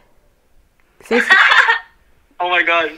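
A teenage boy shouts excitedly over a phone call.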